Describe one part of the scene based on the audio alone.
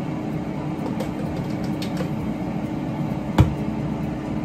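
Plastic spice bottles clink and rattle in hands.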